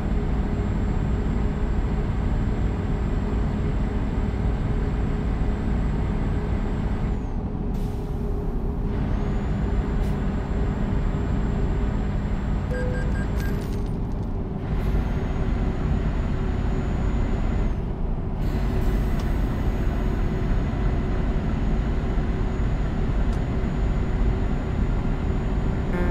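Tyres roll with a steady roar on a motorway.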